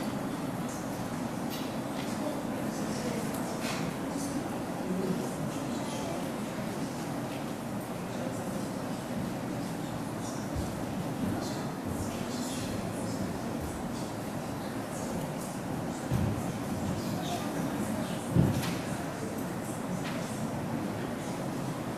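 A crowd of people chatter and murmur in a large echoing hall.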